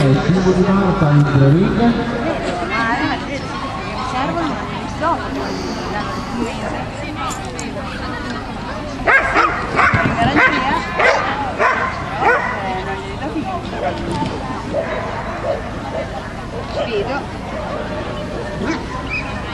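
A crowd chatters outdoors throughout.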